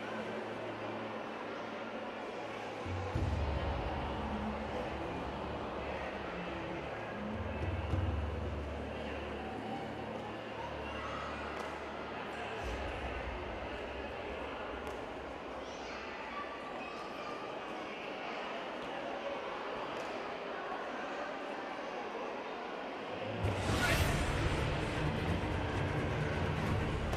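Kicks thud against padded targets in a large echoing hall.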